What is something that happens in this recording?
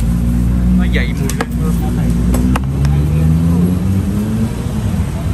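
Metal tongs clack against a food tray.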